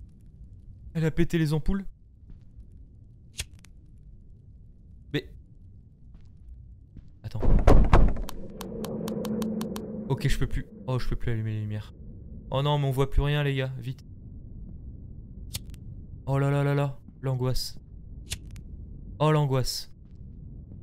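A young man talks into a close microphone in short, calm bursts.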